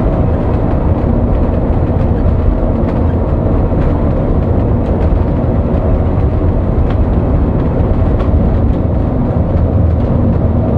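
Tyres rumble on the road at speed.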